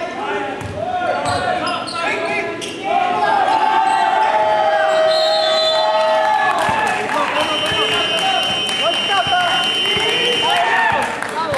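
Young women players call out to each other across the court.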